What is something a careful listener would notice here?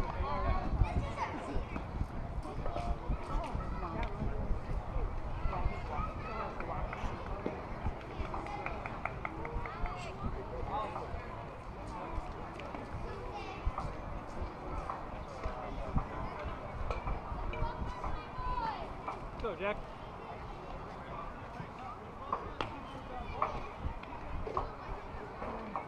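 Young players and adults call out and chatter across an open field.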